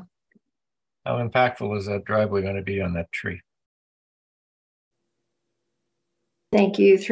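A man speaks over an online call, asking a question.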